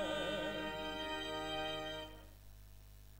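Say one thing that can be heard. Voices sing together through a loudspeaker in a large room.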